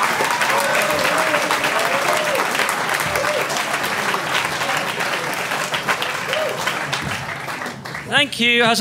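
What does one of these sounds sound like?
An audience claps and cheers loudly in a hall.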